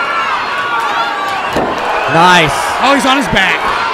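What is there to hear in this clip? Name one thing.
A body slams onto the mat with a heavy thud.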